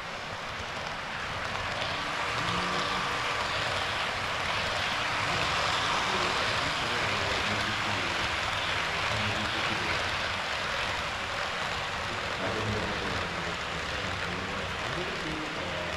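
An HO scale model train rumbles along model track, passing close by.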